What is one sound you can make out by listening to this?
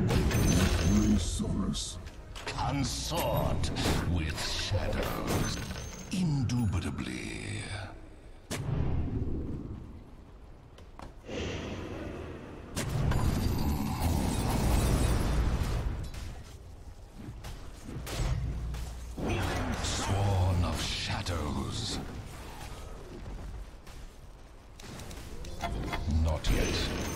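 Magic spells crackle and burst in a busy battle.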